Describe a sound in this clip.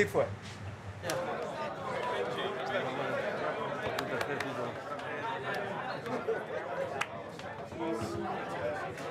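A crowd of men chatters in a room.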